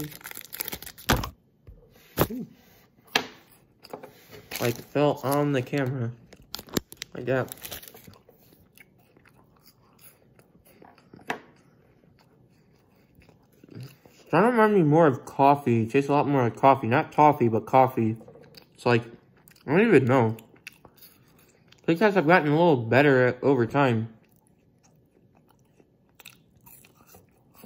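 A young man chews and crunches food.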